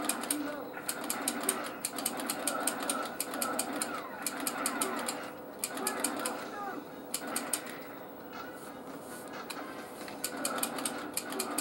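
Electronic game music plays through a small television speaker.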